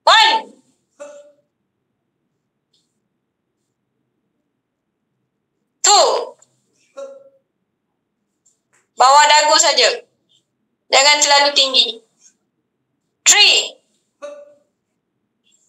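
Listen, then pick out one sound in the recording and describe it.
A young woman speaks in short bursts over an online call.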